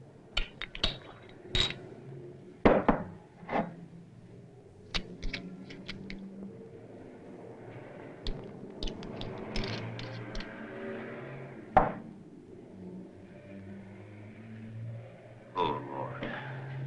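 Small objects click and knock as a man handles them.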